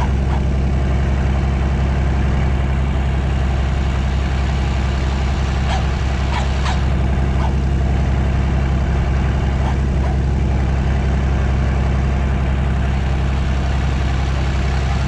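A tractor engine idles with a steady low rumble nearby.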